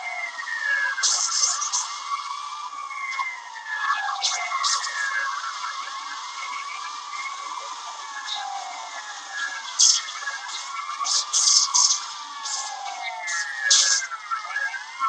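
Cars crash and bang loudly from a small phone speaker.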